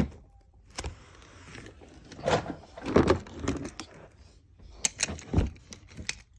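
A cardboard box rustles and knocks as a hand handles it.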